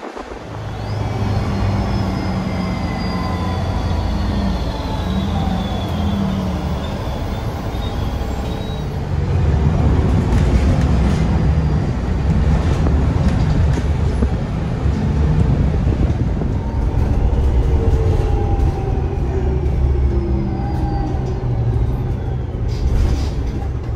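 A bus motor whines, its pitch rising and falling as the bus speeds up and slows.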